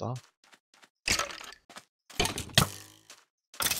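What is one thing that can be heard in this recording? A sword strikes a creature with a few sharp thuds.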